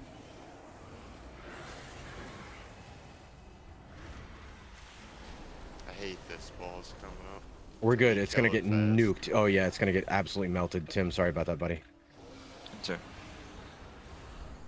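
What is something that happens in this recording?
Magic spells crackle and whoosh in a fantasy battle.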